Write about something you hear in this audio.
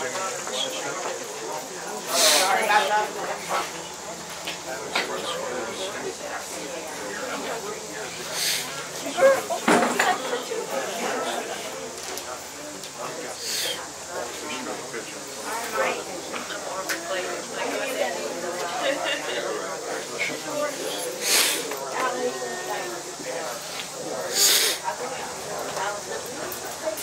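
An elderly man talks calmly up close.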